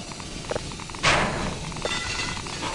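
A metal grate bursts loose with a loud crash.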